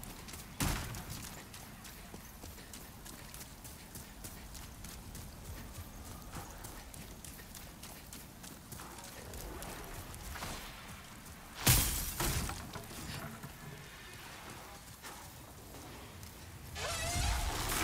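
Footsteps run across stone and gravel.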